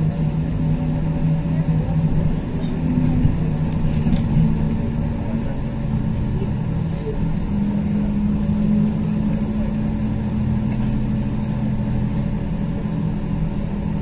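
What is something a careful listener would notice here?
A vehicle's motor hums low and steadily from inside, changing pitch now and then.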